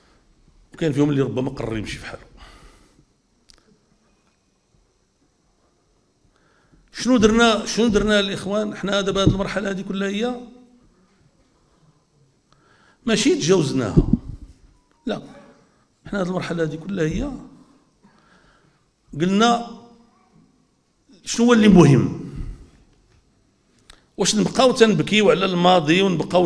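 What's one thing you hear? An older man speaks forcefully into a microphone, in bursts with pauses.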